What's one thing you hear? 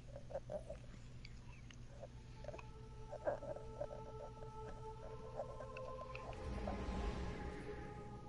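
Menu sounds beep and click softly.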